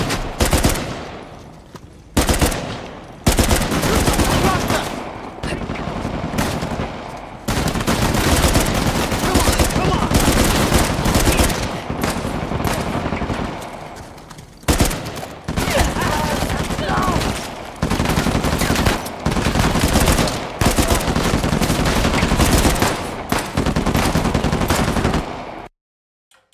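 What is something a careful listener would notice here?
Rapid gunfire bursts crack and echo outdoors.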